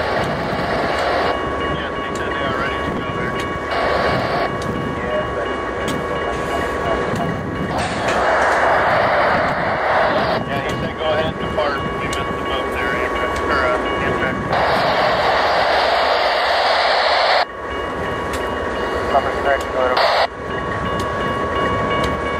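A railway crossing bell rings steadily.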